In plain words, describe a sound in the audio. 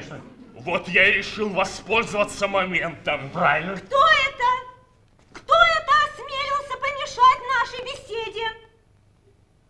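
A man speaks loudly and with animation in a large hall.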